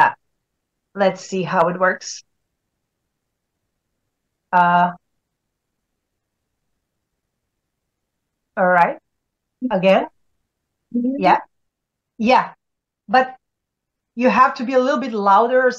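A woman speaks calmly in short phrases with pauses, heard over an online call.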